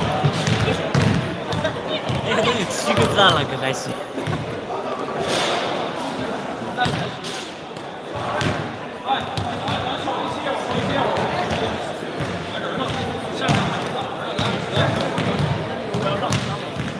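Young men chatter and call out in a large echoing hall.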